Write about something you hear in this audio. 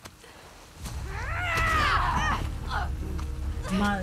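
A woman screams in pain.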